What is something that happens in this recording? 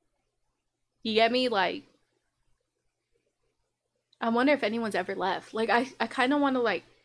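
A young woman speaks close to a microphone in a casual, animated way.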